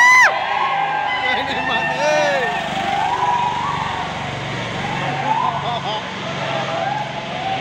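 An auto rickshaw engine idles and rumbles close by.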